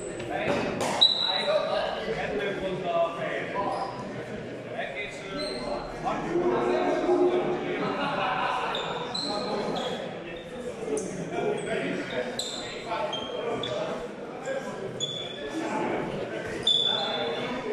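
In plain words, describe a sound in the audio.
Wooden practice swords clack together in a large echoing hall.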